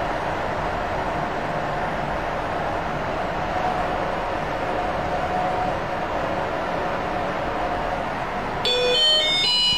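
An elevator hums steadily as it moves down.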